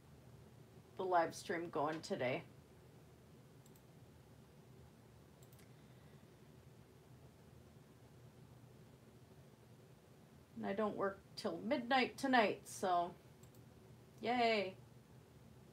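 A middle-aged woman speaks calmly and close by, in short bursts with pauses.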